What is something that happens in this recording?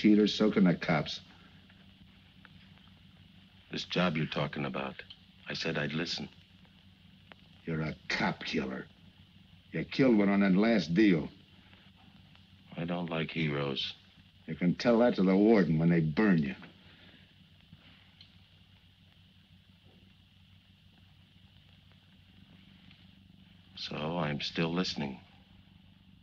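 A man speaks calmly and tensely nearby, in short phrases with long pauses.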